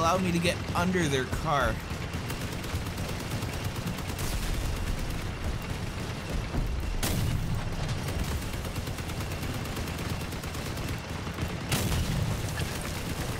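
A heavy armoured vehicle's engine rumbles steadily as it drives.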